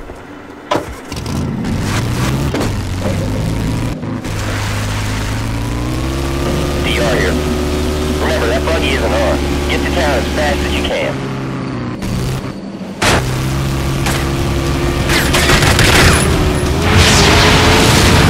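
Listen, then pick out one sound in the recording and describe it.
A buggy engine starts and revs, roaring steadily as it drives.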